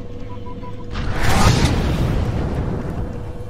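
A large burst of electric energy roars and crackles.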